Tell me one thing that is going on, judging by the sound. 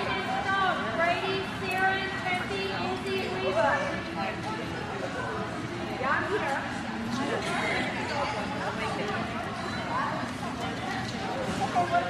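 A small dog barks and yips repeatedly in a large echoing hall.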